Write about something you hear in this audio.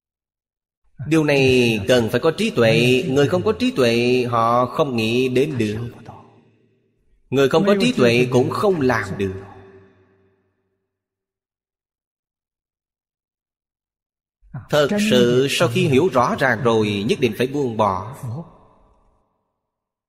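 An elderly man speaks calmly and warmly into a close microphone, pausing between phrases.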